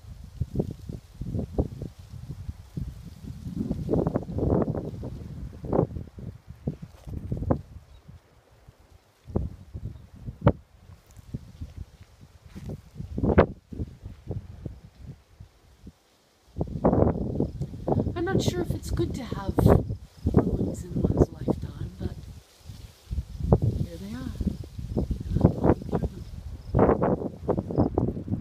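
Wind rumbles and buffets outdoors in gusts.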